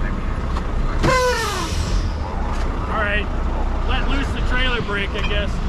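A man calls out loudly outdoors.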